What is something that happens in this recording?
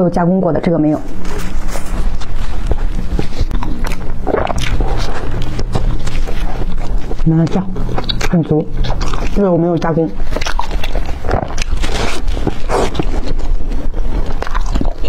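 Crispy pastry crunches loudly as it is chewed close to a microphone.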